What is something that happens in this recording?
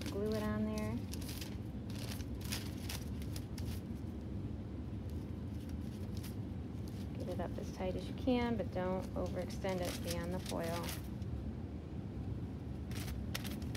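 Aluminium foil crinkles and rustles.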